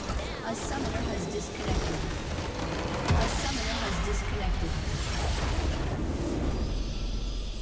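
A loud game explosion roars and crackles.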